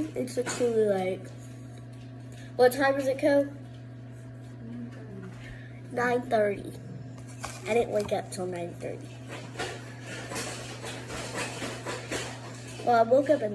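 A knife scrapes spread across a tortilla.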